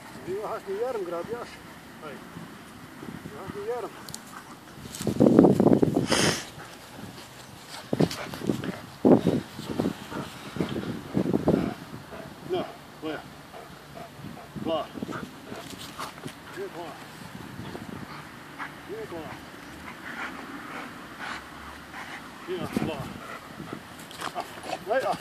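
A dog growls and snarls while tugging on a rope toy.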